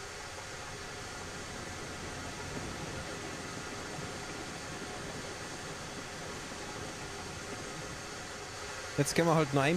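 A steam locomotive idles with a soft, steady hiss of steam.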